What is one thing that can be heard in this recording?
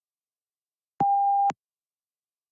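A short electronic beep sounds once.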